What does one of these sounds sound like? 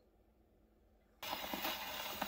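A needle drops onto a spinning record.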